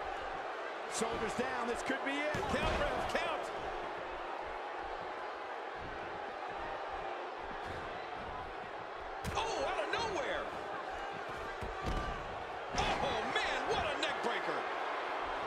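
Bodies slam onto a wrestling ring mat with heavy thuds.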